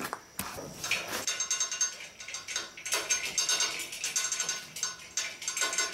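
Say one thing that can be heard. A chain hoist rattles and clicks as it is pulled.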